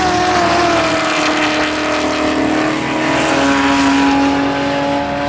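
Engines whine and shift in pitch as cars pass.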